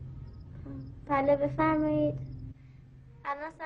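A young girl speaks into a telephone.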